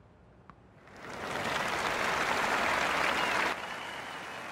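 A crowd claps and cheers loudly, then quickly dies down.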